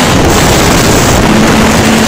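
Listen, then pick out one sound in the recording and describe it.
An off-road buggy engine roars.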